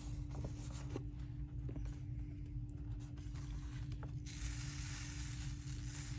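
Paper rustles as a card is handled.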